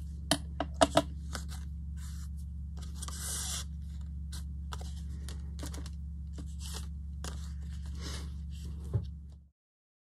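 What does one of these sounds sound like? Small objects tap and click on a tabletop.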